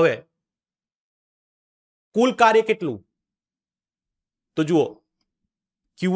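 A man speaks calmly and closely into a microphone, in short phrases with pauses.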